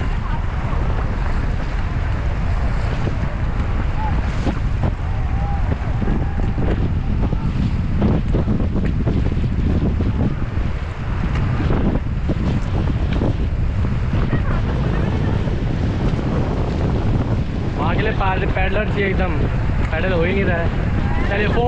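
A river rushes loudly.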